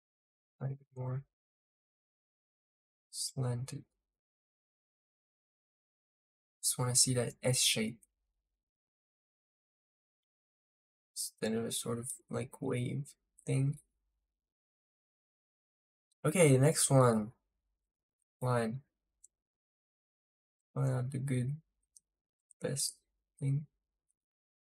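A young man talks calmly into a close microphone, in short bursts with pauses.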